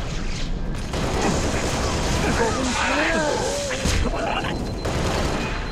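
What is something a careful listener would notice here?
An electric weapon crackles and zaps.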